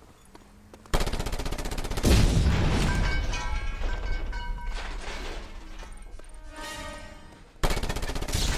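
A metal tower collapses with a loud crashing rumble.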